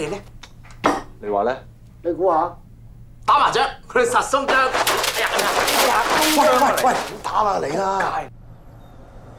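Men talk with animation, close by.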